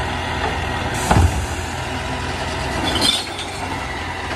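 Rubbish tumbles from a bin into a garbage truck with a loud clatter.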